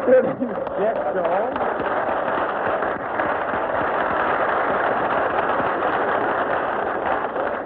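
A crowd of men cheers and laughs loudly.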